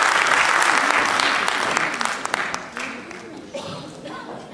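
An audience applauds loudly in a large hall, then the applause fades.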